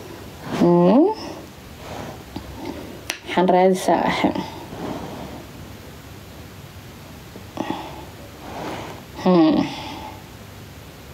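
A young woman speaks close to a microphone, emotionally and haltingly.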